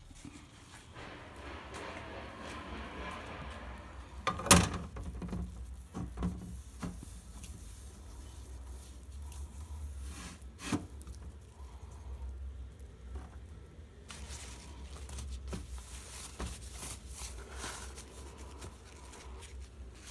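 A paper towel rubs and squeaks on plastic.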